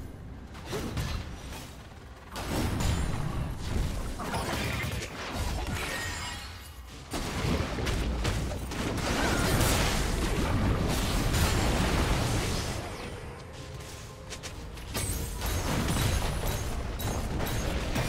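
Video game spells and sword strikes crash and crackle in a busy fight.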